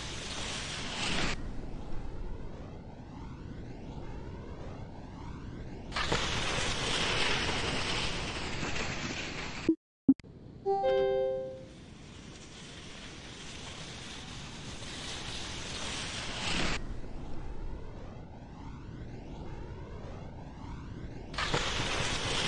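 Air rushes past a ski jumper speeding down the ramp and through the air.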